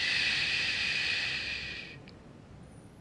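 A man hushes with a long, hissing shush.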